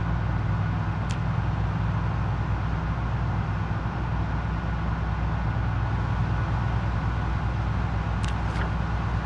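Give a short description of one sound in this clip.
A van engine hums steadily as it drives.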